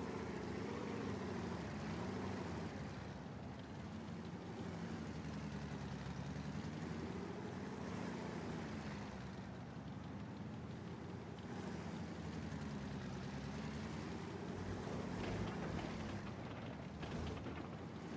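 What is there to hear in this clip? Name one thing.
A tank engine rumbles steadily at idle.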